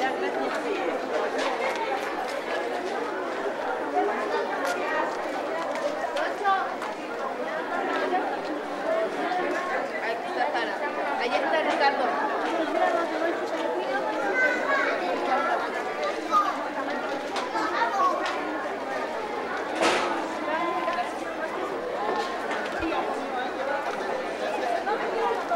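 A crowd of men, women and children chatters all around, close by and further off.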